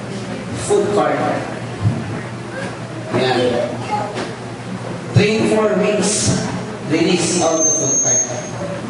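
A man lectures with animation in a room with a slight echo.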